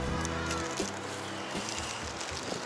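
A young woman talks close by, outdoors.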